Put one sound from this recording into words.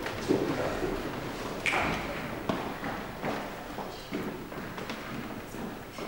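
A young woman speaks from a stage in an echoing hall.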